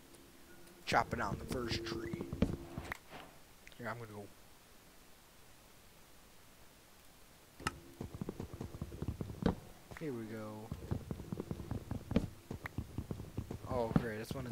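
An axe knocks repeatedly against wood.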